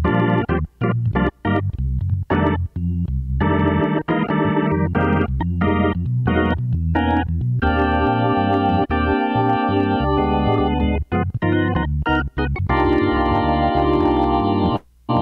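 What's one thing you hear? A keyboard plays quick chords with short bursts and held notes.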